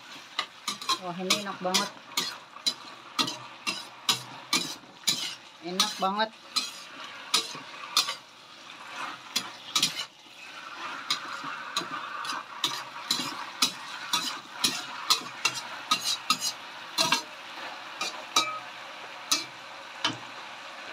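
A metal spatula scrapes and clanks against a wok.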